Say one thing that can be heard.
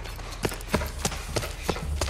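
A burning flare hisses.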